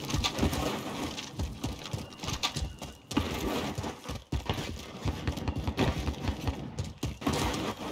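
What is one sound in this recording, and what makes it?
Footsteps run over dirt.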